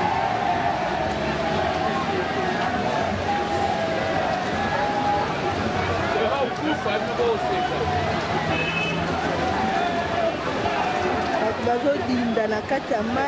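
A busy crowd of men and women chatter and call out all around, outdoors.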